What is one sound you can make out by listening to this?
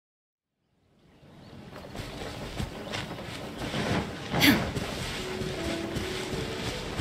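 Quick footsteps patter over grass and dirt.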